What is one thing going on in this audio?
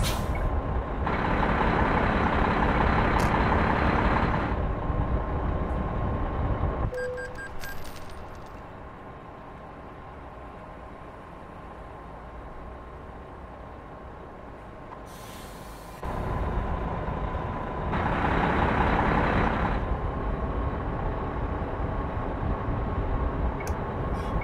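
A truck engine rumbles steadily, louder at times.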